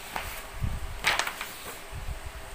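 A sheet of paper rustles as it is moved aside.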